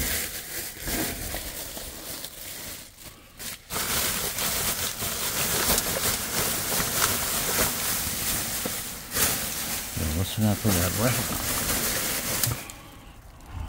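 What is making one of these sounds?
Plastic trash bags rustle and crinkle close by.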